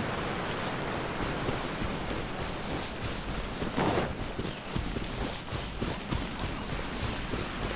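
Footsteps swish quickly through grass.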